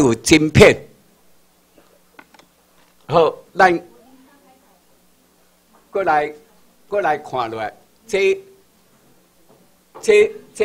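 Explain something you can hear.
An elderly man speaks through a microphone and loudspeakers in short bursts with pauses, in a room with some echo.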